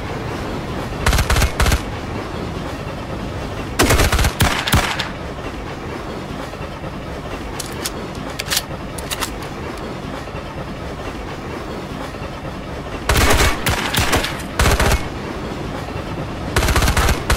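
A submachine gun fires short, loud bursts.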